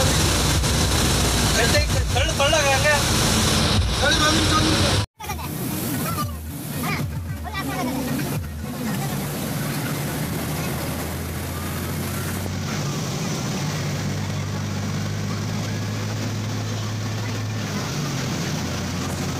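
A vehicle's engine hums steadily while driving along a road.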